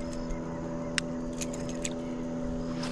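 A fishing reel clicks as its line is wound in.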